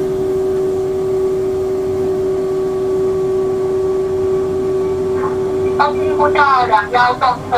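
A train's motor whines at a steady pitch.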